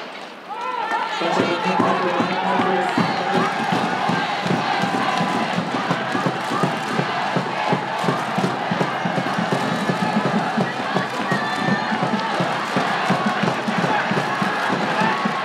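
A crowd of spectators cheers and shouts loudly outdoors.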